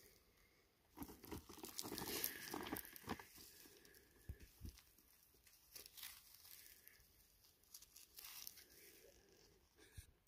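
Work gloves rustle and scrape against a rock as it is turned in the hand.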